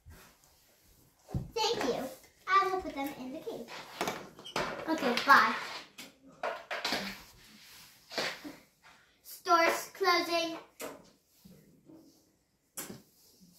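Plastic toys clatter and click on a wooden floor.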